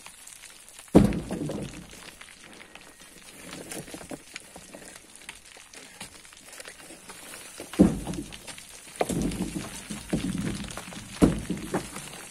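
A metal bar strikes rock with sharp knocks.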